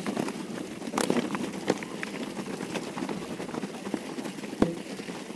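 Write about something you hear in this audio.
A bicycle frame clatters and knocks over bumps.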